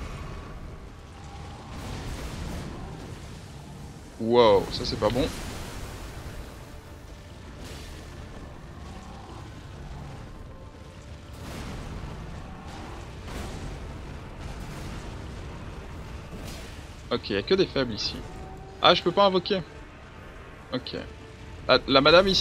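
A huge creature growls with a deep, steady rumble.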